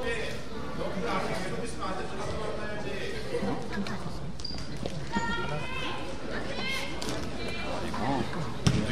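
A crowd of children and adults chatters in a large echoing hall.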